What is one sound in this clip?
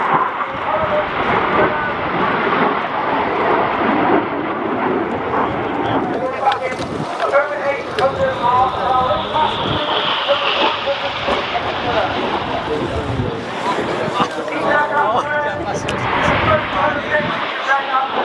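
Jet engines roar overhead in a loud, steady rush.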